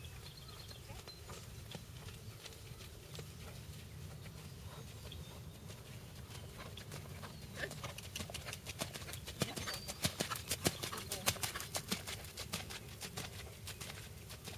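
A horse's hooves thud rhythmically on soft sand.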